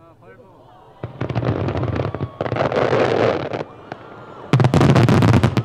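Fireworks boom and crackle across open water at a distance.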